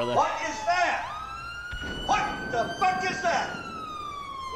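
A man speaks loudly and briefly.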